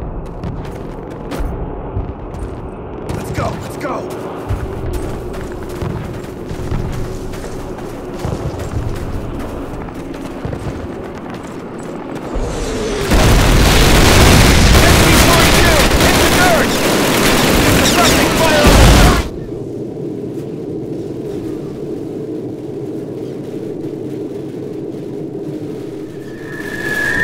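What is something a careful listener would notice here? Rifles and machine guns fire in bursts all around.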